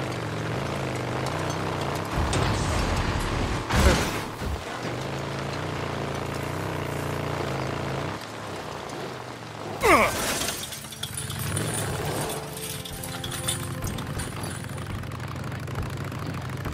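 A motorcycle engine hums and revs steadily.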